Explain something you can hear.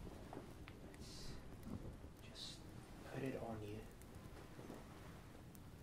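Fabric rustles as a sweater is rubbed close by.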